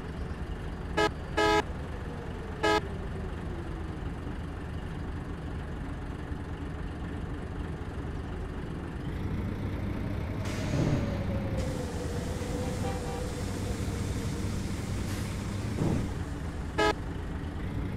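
A bus horn honks in short blasts.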